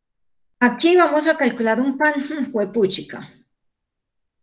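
A woman speaks briefly and with animation over an online call.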